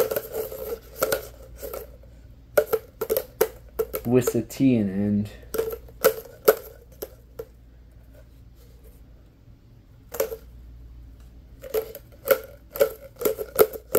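Plastic pop tubes click and snap as a hand shakes them close by.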